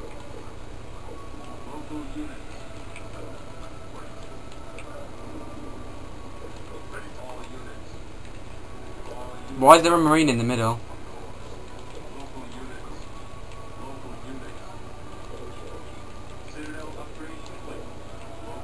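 Video game sounds play faintly from a television speaker.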